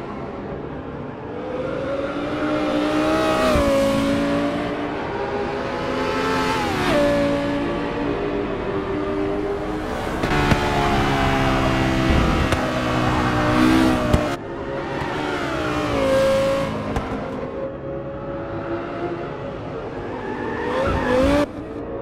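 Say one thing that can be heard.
A race car engine roars and revs up and down.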